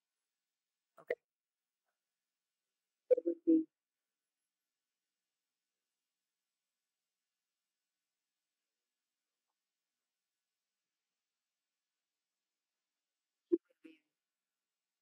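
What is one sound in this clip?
A man speaks briefly into a microphone, with long pauses.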